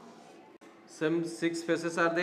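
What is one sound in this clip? A man speaks aloud, as if teaching.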